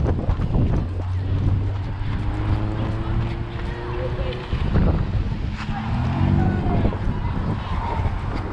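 A truck's engine idles close by.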